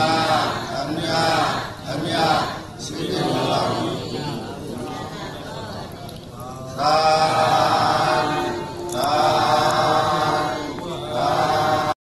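A man chants steadily into a microphone, heard through a loudspeaker.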